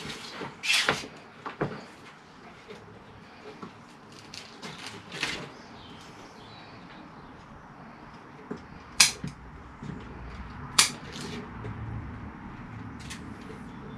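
Soil and roots rustle and scrape as a plant is pulled from its pot.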